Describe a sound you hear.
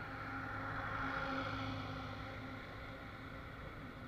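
A truck rumbles past.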